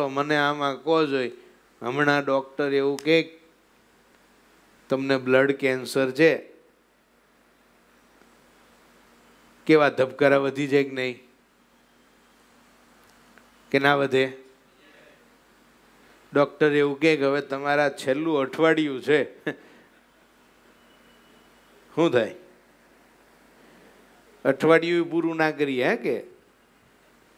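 A middle-aged man speaks with animation into a close microphone, in bursts with pauses.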